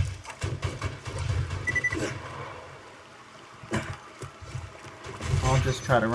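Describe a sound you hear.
Water rushes over rocks.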